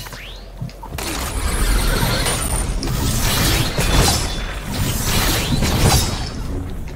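Wind rushes loudly past during a fast glide through the air.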